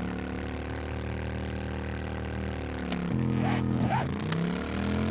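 A motorbike engine hums steadily as it rides along.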